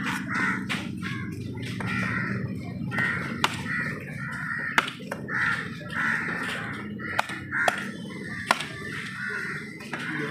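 A heavy cleaver chops sharply onto a wooden block.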